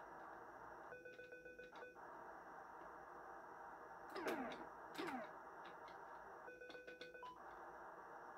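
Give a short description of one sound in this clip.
A retro game refuelling tone beeps in short bursts.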